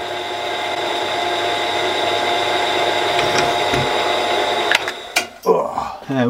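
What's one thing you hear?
A drill press motor hums steadily and then stops.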